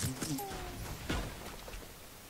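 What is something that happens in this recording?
A bullet strikes a wall with a sharp crack.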